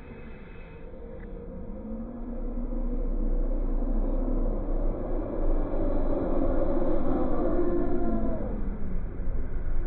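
A roller coaster train rumbles closer along its track and rolls past.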